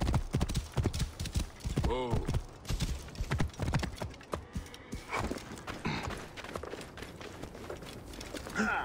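A horse gallops with hooves thudding on hard ground.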